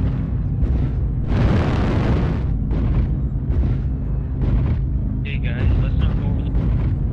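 A heavy machine's engine rumbles low and steady.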